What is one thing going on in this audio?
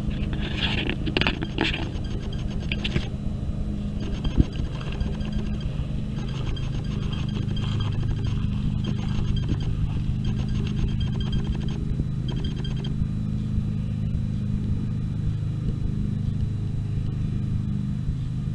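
A ride-on mower engine drones steadily nearby.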